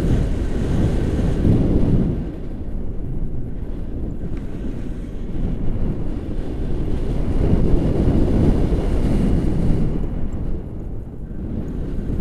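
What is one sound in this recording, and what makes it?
Wind buffets and rumbles loudly against a microphone throughout.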